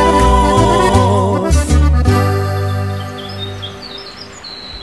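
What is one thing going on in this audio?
A mariachi band plays music on strings, guitars and a double bass.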